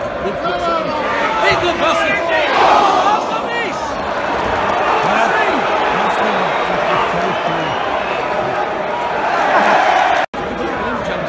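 A stadium crowd cheers and shouts loudly.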